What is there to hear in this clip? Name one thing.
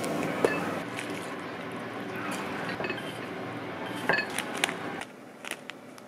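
Liquid pours and splashes into a bowl.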